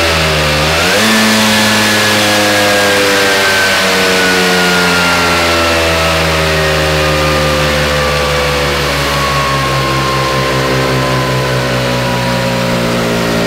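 A scooter engine winds slowly down and runs on steadily.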